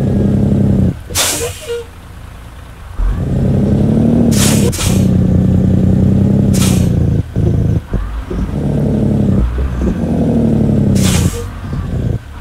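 Air brakes hiss sharply a few times.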